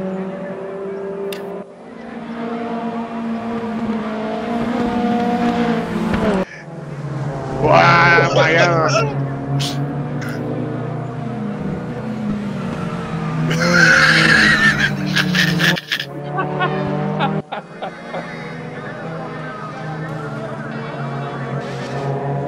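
Racing car engines roar and whine as the cars speed past, shifting gears.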